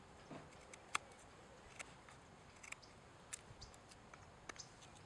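A knife blade scrapes and shaves thin curls from a wooden stick in short strokes.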